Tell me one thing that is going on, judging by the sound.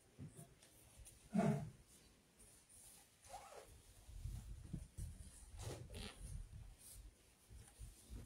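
Monks shuffle on the floor as they kneel and bow.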